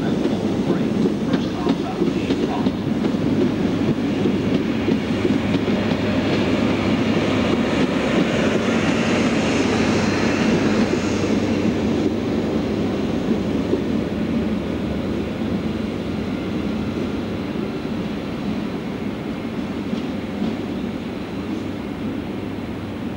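A diesel train rumbles past close by and slowly fades as it pulls away.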